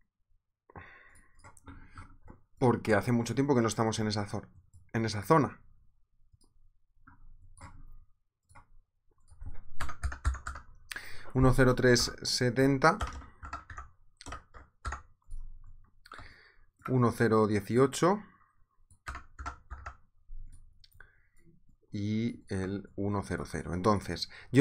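A young man talks calmly and close into a microphone, in short bursts with pauses.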